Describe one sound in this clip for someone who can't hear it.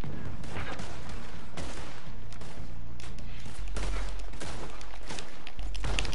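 Gunshots crack in a brief exchange of fire.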